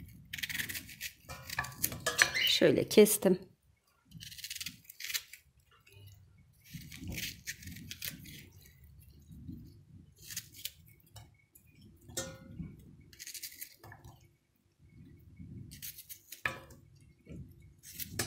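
Chopped pieces drop into a metal pot with light taps.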